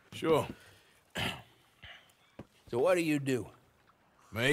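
A man speaks in a gruff, questioning voice close by.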